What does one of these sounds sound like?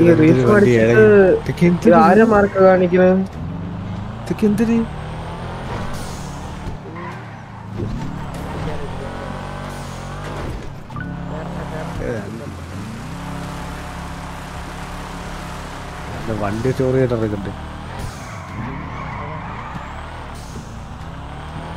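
A car engine roars and revs as it speeds along.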